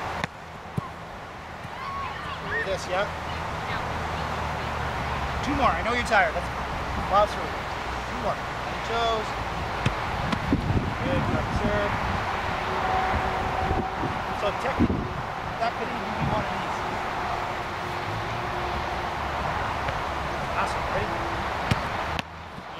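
A soccer ball is kicked with a dull thud, again and again.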